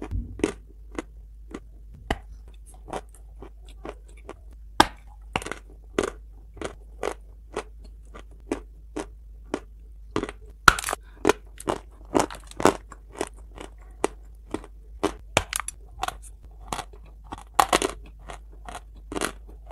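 A woman chews and crunches loudly close to a microphone.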